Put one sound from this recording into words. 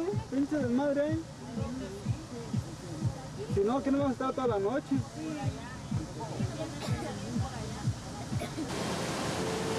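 Several people talk nearby with animation.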